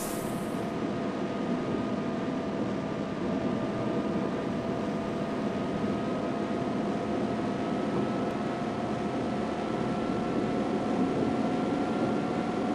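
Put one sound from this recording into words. A bus engine hums steadily at speed.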